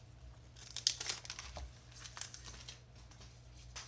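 Playing cards rustle and slide against each other as they are handled.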